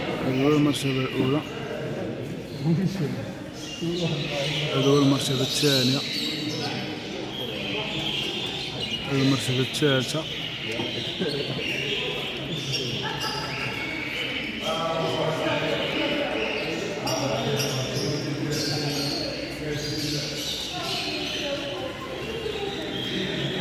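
Budgies chatter and chirp nearby.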